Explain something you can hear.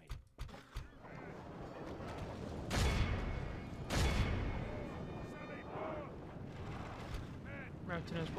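A distant battle din of many fighting soldiers roars steadily.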